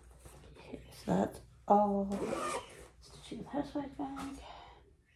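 A woman speaks quietly and briefly close by.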